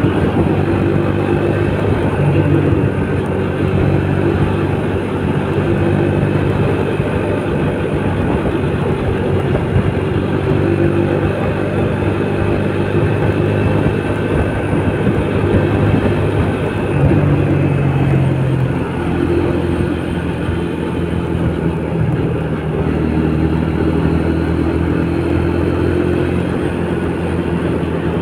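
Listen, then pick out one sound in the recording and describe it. Wind rushes past while riding.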